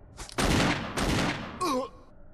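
A revolver fires two loud shots.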